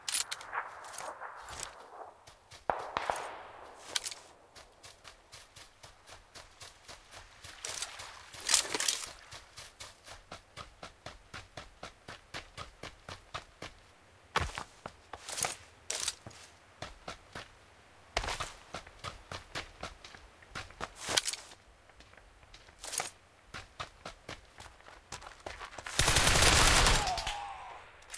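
Footsteps crunch quickly over gravel and grass.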